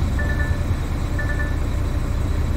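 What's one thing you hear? A warning chime beeps a few times.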